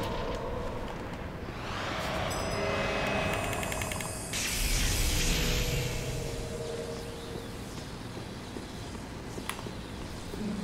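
Armoured footsteps clank on stone steps.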